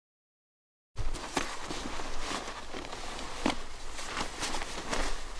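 A backpack's straps and gear rustle and knock.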